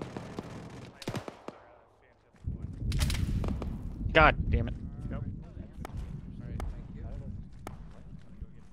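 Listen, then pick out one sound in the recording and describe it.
Rifle shots crack in short bursts.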